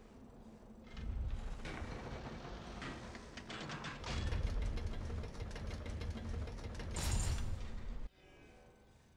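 A heavy stone block grinds and rumbles as it is dragged.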